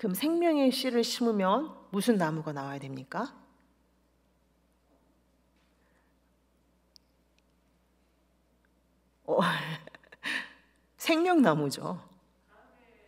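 A woman speaks calmly into a microphone, pausing between phrases.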